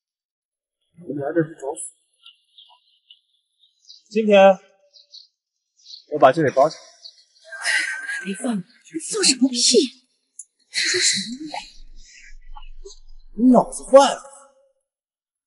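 A young man speaks mockingly and with animation close by.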